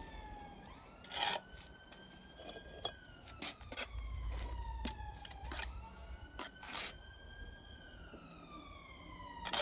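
A trowel taps bricks into place with sharp knocks.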